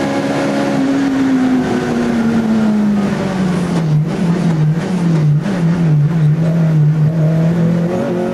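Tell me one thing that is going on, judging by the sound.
A race car engine drops in pitch as the car downshifts and brakes into a corner.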